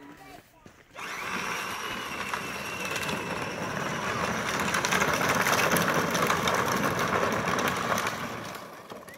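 A small electric toy car motor whirs as the car rolls closer.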